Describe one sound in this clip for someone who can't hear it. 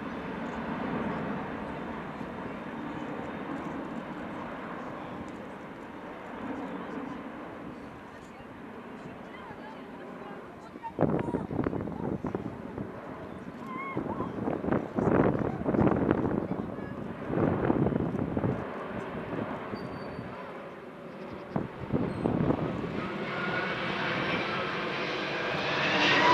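A large jet airliner roars overhead, its engines rumbling and growing louder as it climbs past.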